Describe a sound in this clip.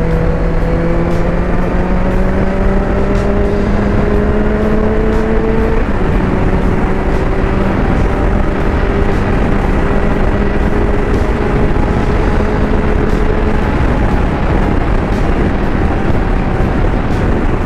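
A motorcycle engine hums steadily, rising in pitch as it speeds up, then drops at a gear change.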